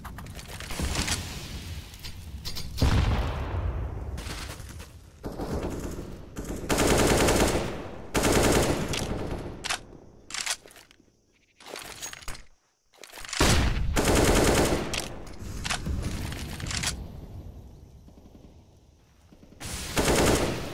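A rifle magazine clicks and clatters during a reload.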